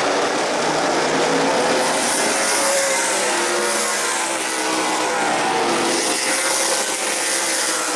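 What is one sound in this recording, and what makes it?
A large crowd cheers outdoors.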